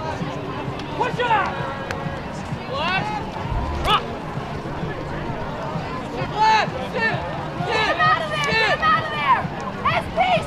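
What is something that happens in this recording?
Young players shout calls to each other outdoors.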